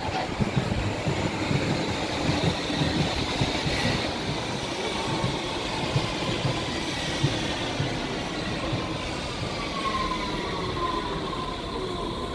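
A train rumbles in, its wheels clattering over the rail joints as it slows.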